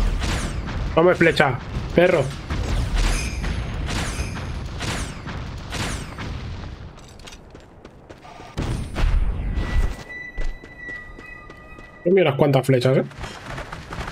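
A man talks into a microphone with animation, close by.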